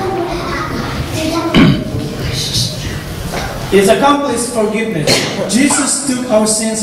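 A middle-aged man reads out aloud into a microphone.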